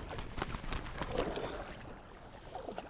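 Water splashes as a bird flaps.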